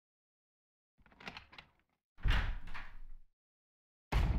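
A wooden door creaks open with a loud thud.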